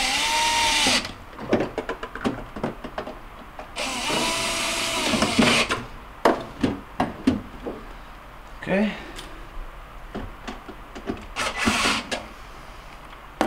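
A power drill whirs in short bursts.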